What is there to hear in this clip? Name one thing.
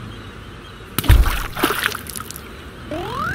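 Stone blocks crash and crumble.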